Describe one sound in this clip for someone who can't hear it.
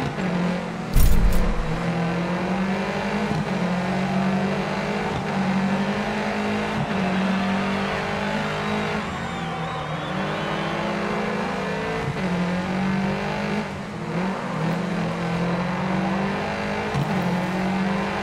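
A rally car engine revs hard and shifts through the gears.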